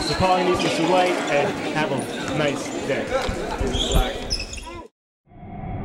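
Young women and men chatter in a large echoing hall.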